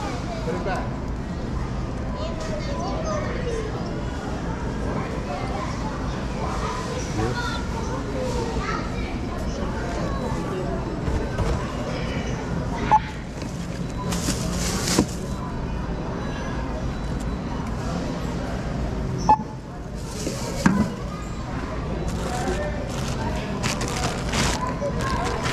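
A busy store hums with a steady murmur of distant voices.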